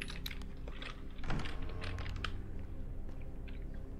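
A door is pushed open with a thud.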